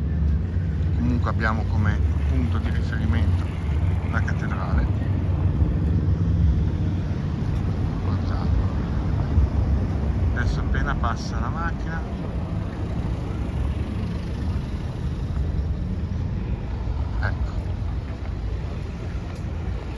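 Distant city traffic hums.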